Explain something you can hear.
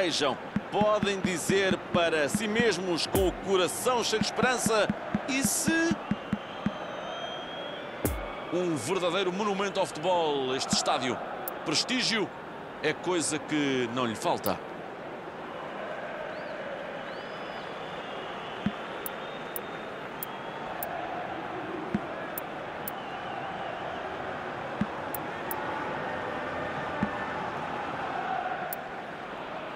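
A large stadium crowd murmurs steadily in the distance.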